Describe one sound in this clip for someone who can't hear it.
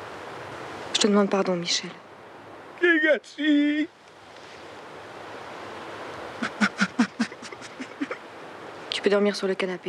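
A woman speaks quietly in short phrases.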